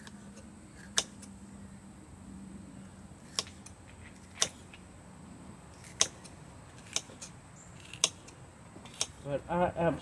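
A knife chops through an onion onto a cutting board.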